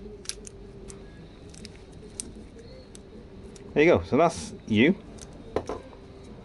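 Small plastic parts click and tap together.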